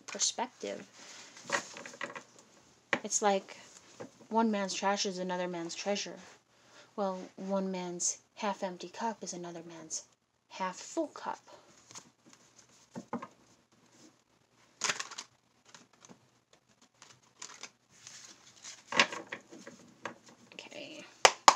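Playing cards are shuffled with soft flicks and rustles.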